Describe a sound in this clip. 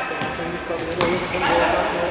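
A futsal ball is kicked on a hard indoor court.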